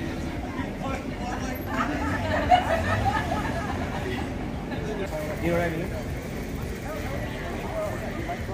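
A crowd of people chatters at outdoor tables nearby.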